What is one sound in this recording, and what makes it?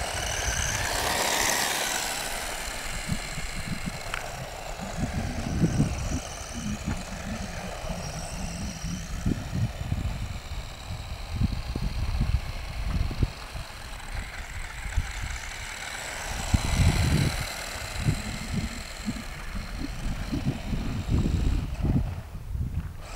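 The tyres of a small remote-controlled car rumble and bump over rough tarmac close by.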